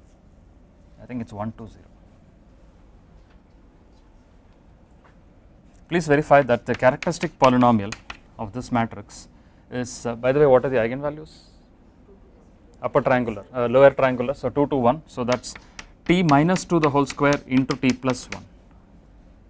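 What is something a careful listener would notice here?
A man speaks calmly, as if teaching, through a microphone.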